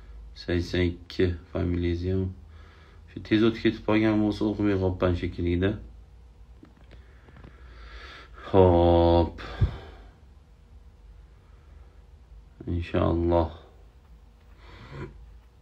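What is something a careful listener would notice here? A middle-aged man speaks slowly and earnestly, close to the microphone, with long pauses.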